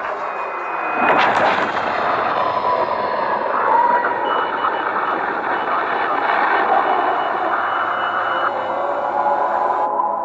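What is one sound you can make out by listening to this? A huge explosion booms and rumbles on.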